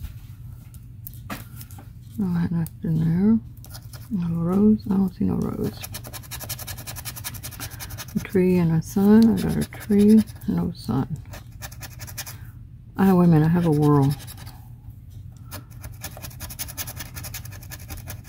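A coin scrapes and scratches across a card.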